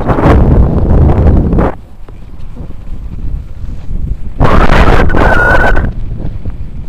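Wind buffets the microphone in loud gusts.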